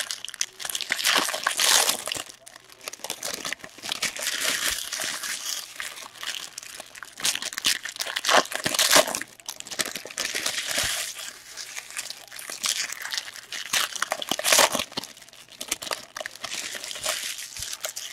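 Plastic card wrappers crinkle and rustle as hands tear them open.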